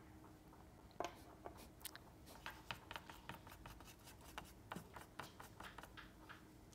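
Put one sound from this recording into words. Soft pastel taps and scratches on paper.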